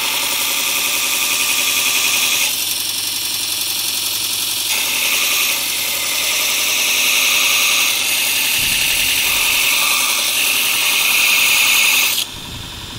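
A belt grinder whines loudly as metal is pressed against the belt.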